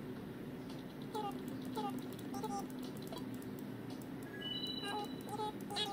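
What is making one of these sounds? Short chirping game sounds play through a small speaker.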